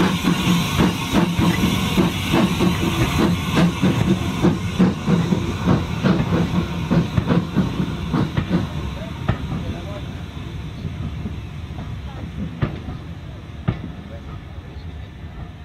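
Railway carriage wheels clatter rhythmically over rail joints.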